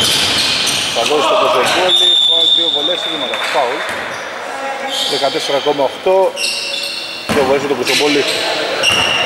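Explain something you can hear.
Men shout and call out to each other in an echoing gym.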